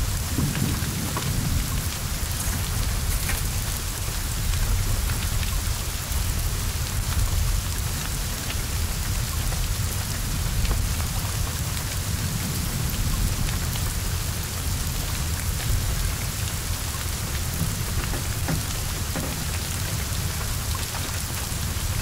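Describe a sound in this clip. Flames roar and crackle from a burning car.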